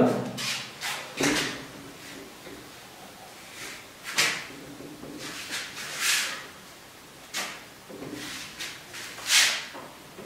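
An eraser rubs against a whiteboard.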